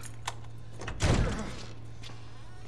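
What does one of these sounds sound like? A door bangs open with a heavy thud.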